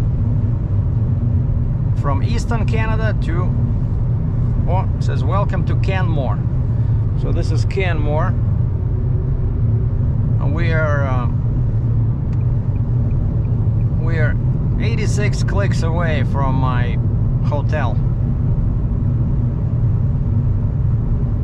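A car engine hums and tyres rumble steadily on a highway.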